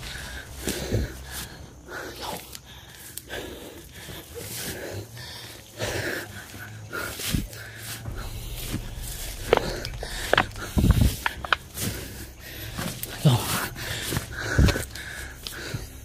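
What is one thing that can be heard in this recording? Footsteps push through dense leafy undergrowth, rustling the leaves.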